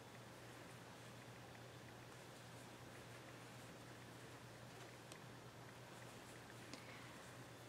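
Yarn rustles softly as it is pulled and looped.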